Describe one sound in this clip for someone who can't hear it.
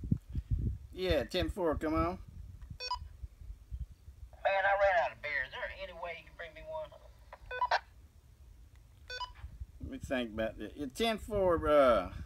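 A middle-aged man talks into a two-way radio.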